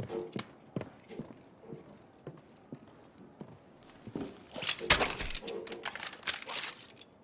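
Footsteps thud softly on wooden boards.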